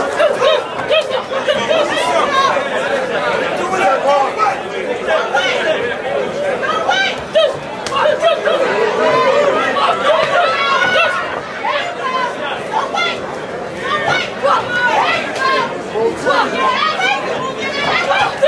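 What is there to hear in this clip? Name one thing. Boxing gloves thud against a boxer's body and gloves.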